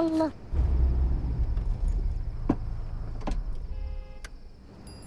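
A car engine rumbles low.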